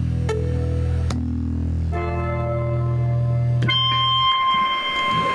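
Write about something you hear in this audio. Electric guitars and bass play loudly through amplifiers, then stop ringing out.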